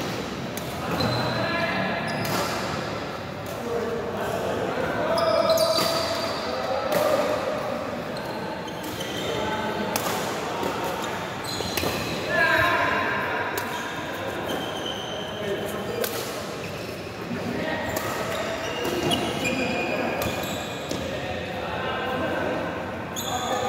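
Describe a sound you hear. Sneakers squeak and patter on a court floor.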